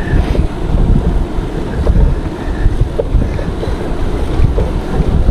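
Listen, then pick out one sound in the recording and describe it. Wind rushes past loudly as a bicycle rides along.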